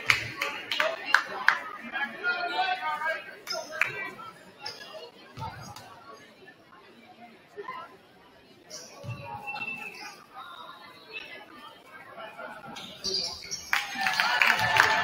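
Sneakers squeak sharply on a hard court in a large echoing gym.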